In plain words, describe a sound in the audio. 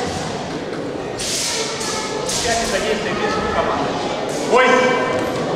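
A man calls out commands loudly in an echoing hall.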